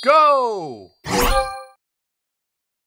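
A game chimes brightly as pieces swap.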